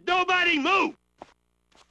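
A man shouts sharply.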